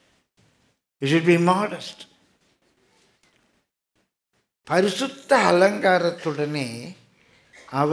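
An elderly man speaks with feeling through a microphone, with pauses between phrases.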